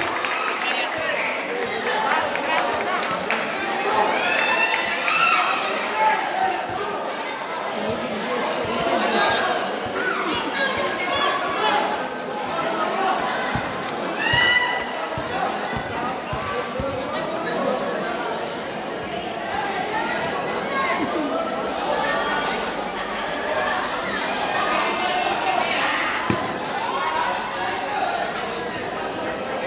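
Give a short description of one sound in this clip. A crowd of young men and boys chatters and calls out all around in a large echoing hall.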